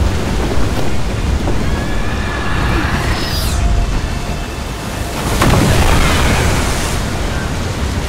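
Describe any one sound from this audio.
Water rushes and roars loudly.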